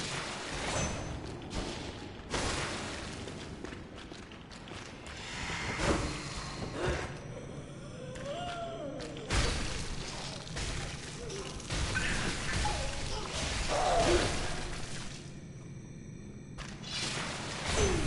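A blade swishes and strikes with wet thuds.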